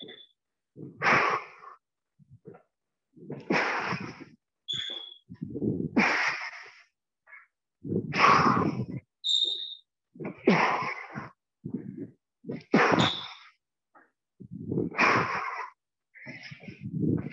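A squash ball smacks against the walls, echoing around a hard court.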